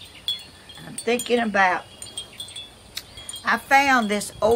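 An elderly woman speaks calmly, close by.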